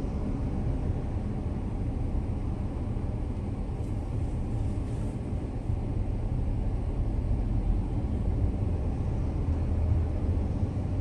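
A vehicle's engine rumbles steadily from inside the cabin.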